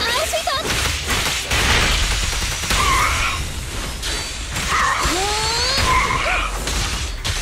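Heavy hits and blasts thud over and over.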